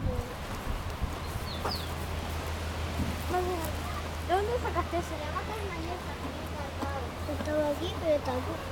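A horse munches on hay.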